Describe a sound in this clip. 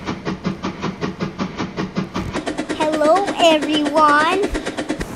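A small steam engine chuffs in a fast, steady rhythm as it rolls along the track.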